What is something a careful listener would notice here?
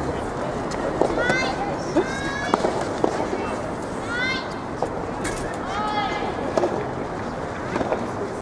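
Rackets strike a tennis ball back and forth with sharp pops.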